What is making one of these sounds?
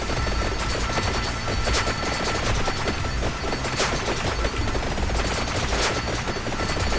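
Rapid electronic game sound effects crackle and chime without pause.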